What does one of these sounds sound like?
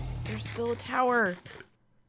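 A game character eats food with crunchy munching sounds.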